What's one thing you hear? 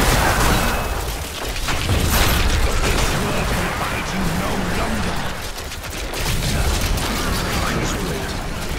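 Spell blasts and explosions crackle and boom in rapid succession.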